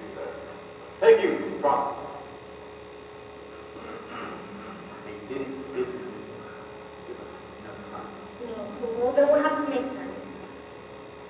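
A man speaks with animation, heard from far off in an echoing hall.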